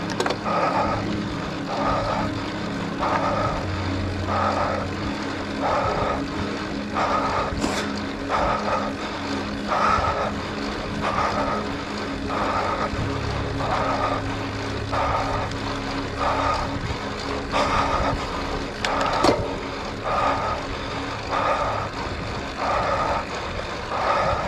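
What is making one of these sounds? Wind rushes past a moving cyclist.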